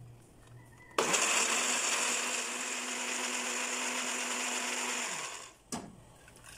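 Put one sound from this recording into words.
A blender whirs loudly as it blends.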